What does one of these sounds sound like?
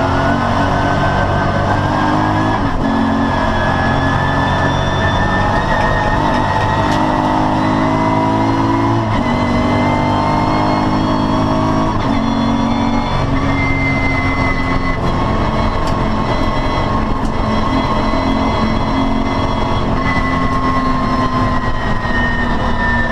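A race car engine roars loudly from inside the cabin, its pitch rising and dropping with each gear change.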